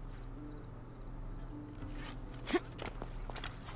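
Footsteps scrape and thud on a tiled roof.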